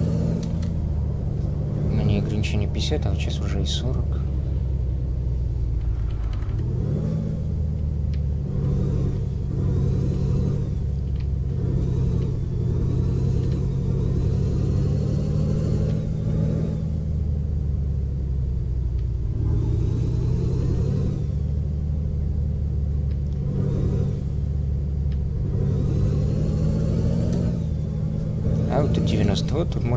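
A truck's diesel engine drones steadily, rising and falling in pitch as it speeds up and shifts gears.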